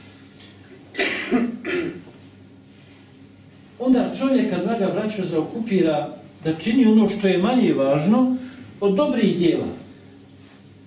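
A man speaks calmly through a headset microphone, reading aloud in bursts with pauses.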